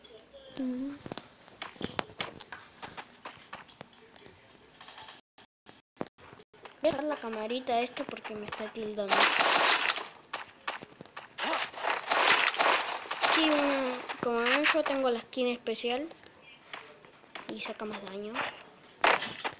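A young boy talks with animation close to a microphone.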